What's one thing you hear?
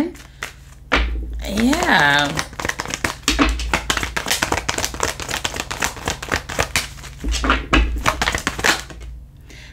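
Playing cards riffle and rustle as they are shuffled.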